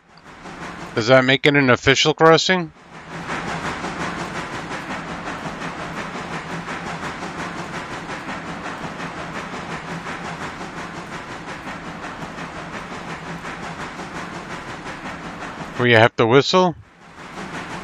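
A steam locomotive whistle blows in short, loud blasts.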